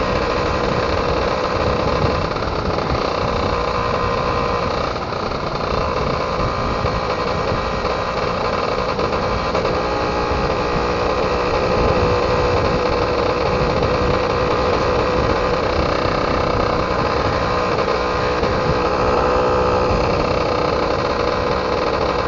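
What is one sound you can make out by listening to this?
A motorbike engine hums steadily up close as it rides along.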